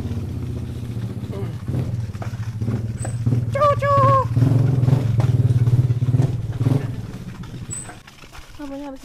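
A motorcycle engine idles and revs nearby.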